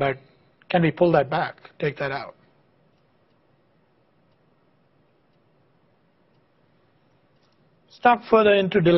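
A man lectures calmly through a microphone, pausing between phrases.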